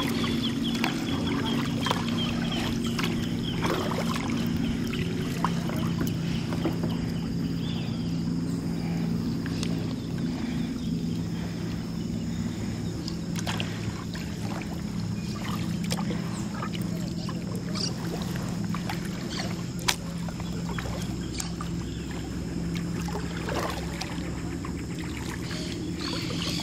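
Water ripples and laps against a kayak hull.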